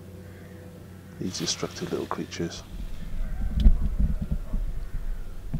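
A squirrel scampers and rustles through grass.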